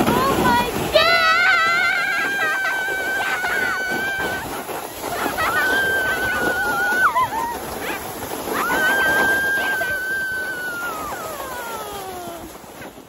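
A young girl squeals with delight.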